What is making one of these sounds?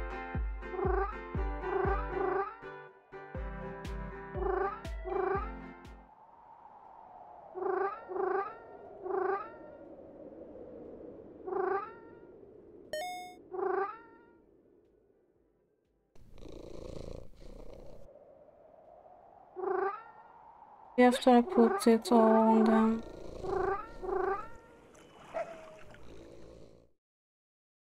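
Bouncy game music plays with plinking, bell-like notes.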